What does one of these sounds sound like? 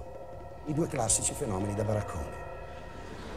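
A man sings expressively through a microphone.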